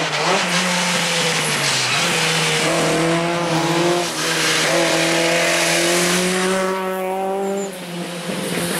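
A rally car engine roars close by, revving high and shifting gears as it speeds past.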